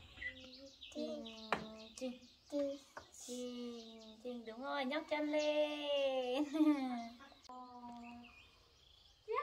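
A young woman talks playfully and sing-song to a small child nearby.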